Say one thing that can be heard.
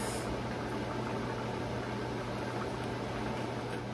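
A metal spoon clinks against a pot.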